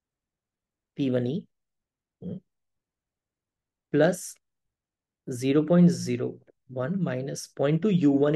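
A man speaks calmly and explains close to a microphone, in short phrases with pauses.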